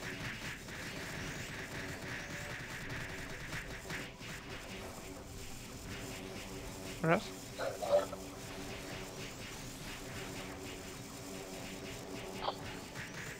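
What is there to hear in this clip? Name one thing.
Magic spell effects burst and crackle.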